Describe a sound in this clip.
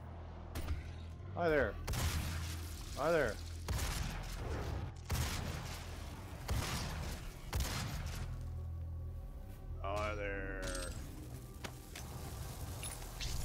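Gunfire bursts rapidly in a game.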